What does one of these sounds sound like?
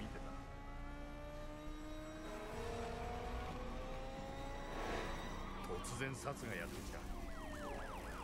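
Car engines roar and rev up as cars race.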